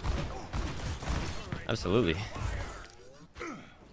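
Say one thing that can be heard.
Gunfire and explosions from a video game crackle loudly.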